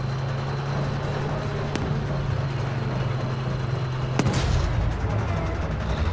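Tank tracks clank and grind over the street.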